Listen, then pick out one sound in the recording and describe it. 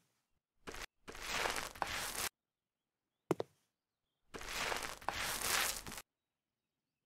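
A paint roller rolls wetly over a wall in long strokes.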